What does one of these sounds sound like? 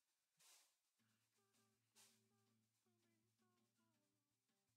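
Gentle melodic music plays.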